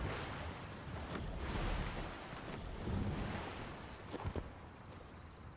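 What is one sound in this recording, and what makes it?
A game character swims and splashes through water.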